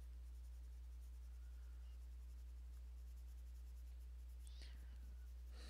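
A coloured pencil softly scratches across paper.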